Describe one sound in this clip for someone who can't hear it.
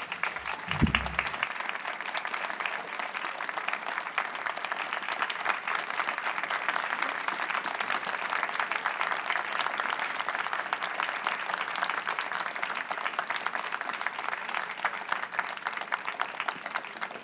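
An outdoor audience applauds steadily.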